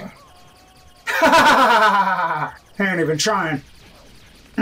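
A man exclaims with excitement close to a microphone.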